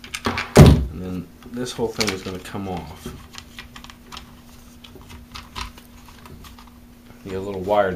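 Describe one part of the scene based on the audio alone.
A plastic engine cover clicks and rattles as it is lifted off.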